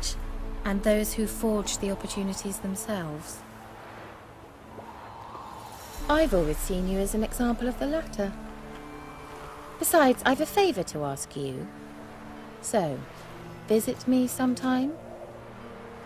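A young woman speaks calmly and teasingly, close by.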